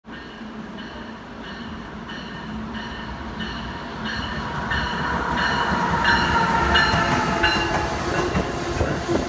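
A passenger train approaches and rumbles past close by, growing steadily louder.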